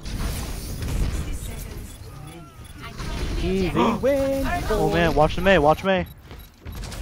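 Gunfire crackles rapidly and energy blasts hum.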